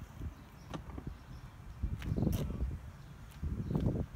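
A scooter seat unlatches with a click and swings open.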